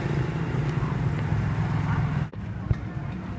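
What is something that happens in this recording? A motorbike engine rumbles past on a street.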